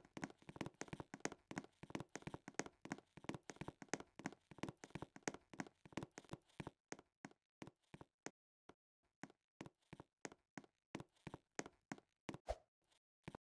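Quick footsteps patter on a hard surface.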